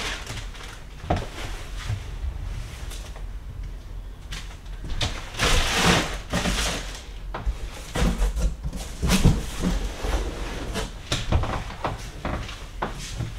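Parts of a stroller click and clatter as they are handled.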